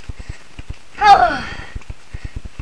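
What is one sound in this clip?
A young boy shouts out loudly once.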